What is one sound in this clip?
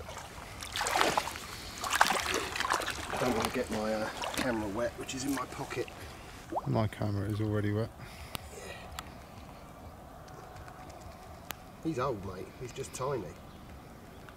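Water splashes as a man wades and handles a net.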